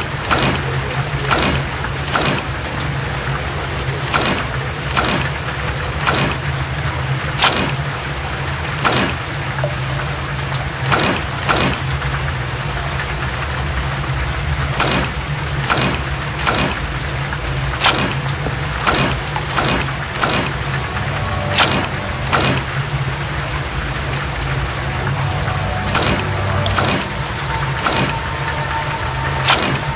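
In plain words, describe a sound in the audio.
Puzzle pieces click sharply as they turn, again and again.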